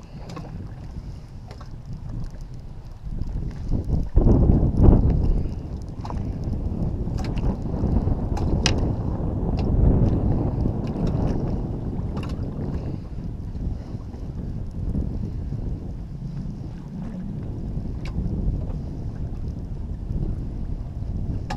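Wind buffets loudly outdoors on open water.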